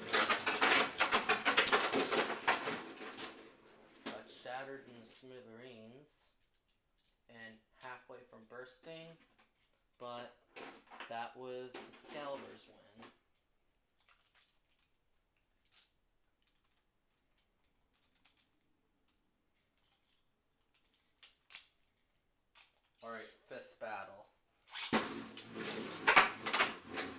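Spinning tops clatter and scrape against each other in a plastic arena.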